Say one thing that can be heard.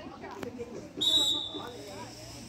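A referee's whistle blows a short sharp blast.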